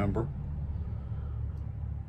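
An elderly man sips a drink.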